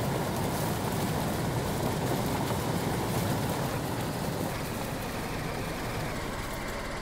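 A car engine runs and revs as the car drives over grass.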